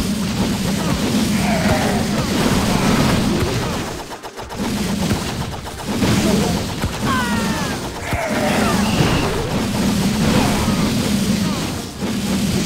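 Dragons breathe roaring bursts of fire.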